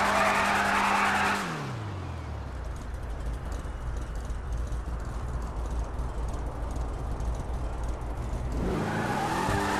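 A car engine rumbles loudly at idle, then drops to a low hum.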